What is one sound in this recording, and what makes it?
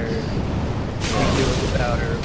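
A burst of fire roars.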